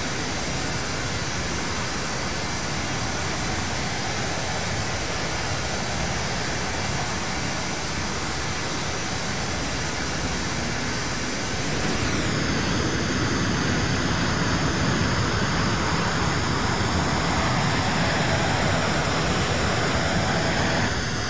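Jet engines roar steadily, growing louder partway through.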